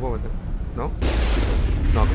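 A loud explosion bursts with a roar.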